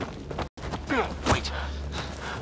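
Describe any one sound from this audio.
An armoured figure thuds onto rocky ground.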